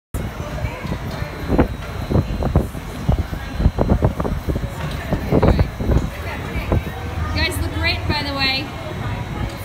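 Women talk and laugh cheerfully close by, outdoors.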